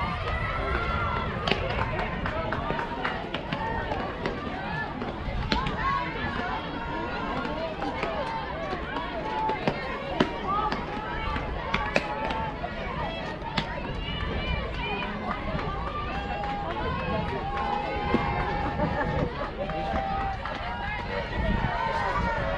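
Girls shout and chatter across an open field.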